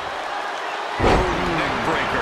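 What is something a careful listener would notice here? A body slams heavily onto a wrestling mat.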